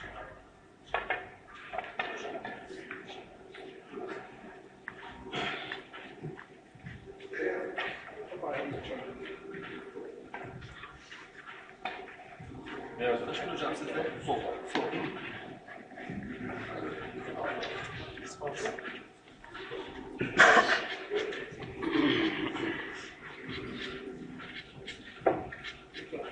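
A cue strikes a billiard ball with a sharp knock.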